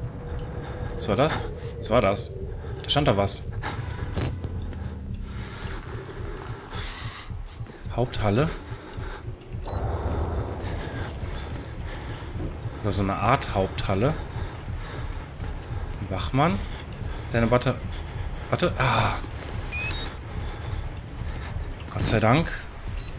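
A man talks into a close microphone in short, animated bursts.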